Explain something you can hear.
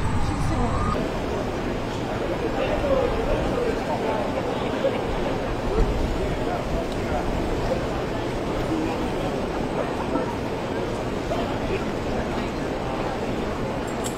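A crowd of men and women murmurs and talks outdoors.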